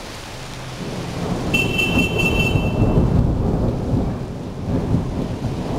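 Thunder rumbles low and heavy in the distance.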